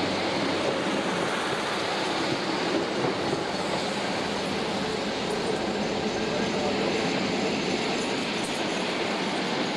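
A passenger train rolls past close by with clattering wheels.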